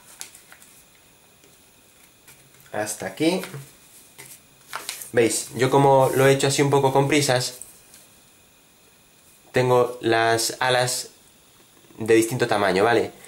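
Paper crinkles and rustles as it is folded and creased.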